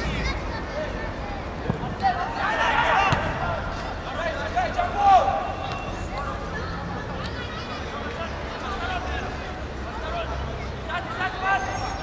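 A crowd of spectators murmurs and calls out from the stands.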